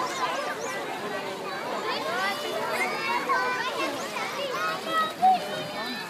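Water splashes as people move in a pool.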